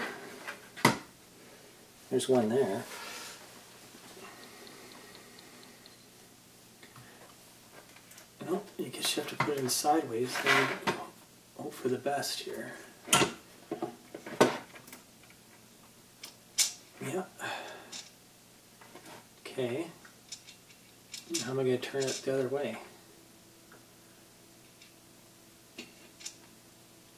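Small plastic and metal parts click and knock as they are handled close by.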